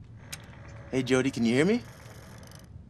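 A man asks a question through a loudspeaker.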